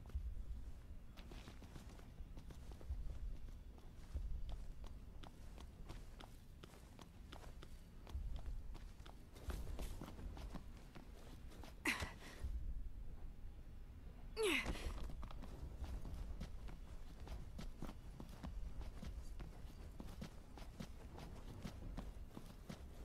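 Footsteps crunch quickly over snow and pavement.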